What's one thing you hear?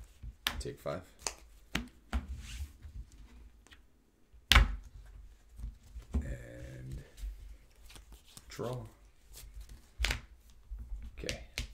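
Cards slap and slide on a table.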